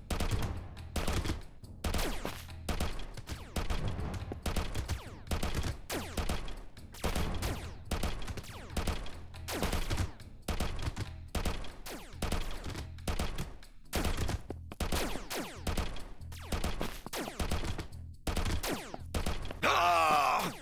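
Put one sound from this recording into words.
Guns fire in rapid bursts with sharp blasts.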